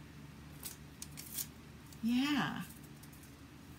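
Adhesive tape is pulled off a roll with a ripping squeak.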